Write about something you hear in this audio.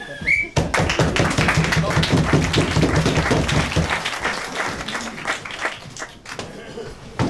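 An audience applauds and cheers loudly in a room.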